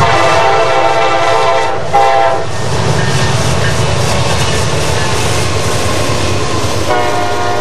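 Diesel locomotives rumble past.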